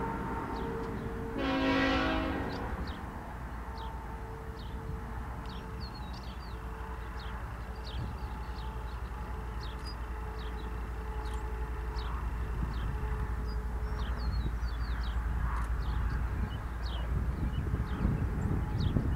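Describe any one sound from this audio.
A train rumbles as it approaches from far off, growing louder.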